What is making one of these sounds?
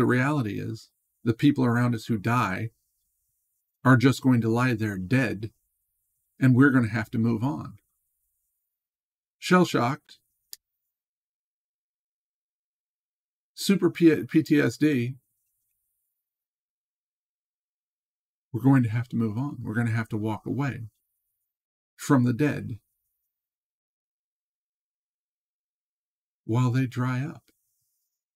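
A middle-aged man speaks calmly and slowly into a close microphone, with long pauses.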